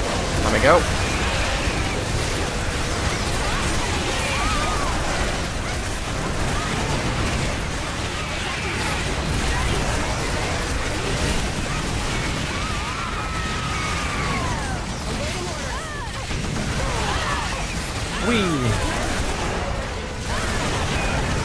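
Rapid gunfire and explosions boom continuously.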